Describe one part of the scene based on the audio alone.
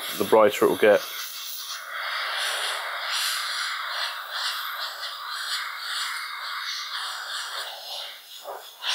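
An airbrush hisses steadily as it sprays.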